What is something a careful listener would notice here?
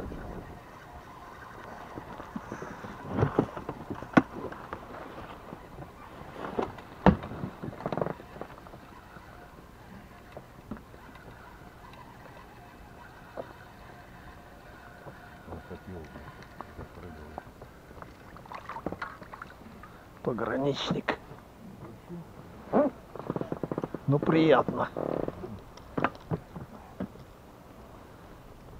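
Small waves lap against a boat.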